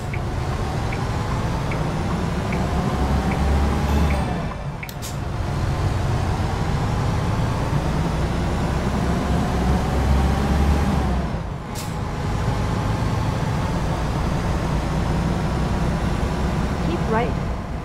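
A truck engine rumbles and revs up through the gears as it drives.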